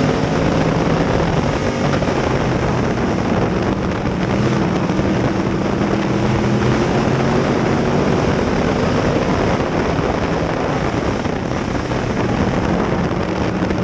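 A race car engine roars loudly up close, its pitch rising and falling as it accelerates.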